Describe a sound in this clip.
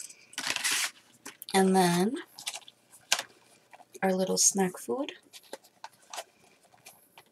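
Paper packaging crinkles and rustles in a woman's hands.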